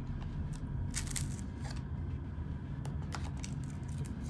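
A knife blade scrapes and clicks against a plastic headphone cup.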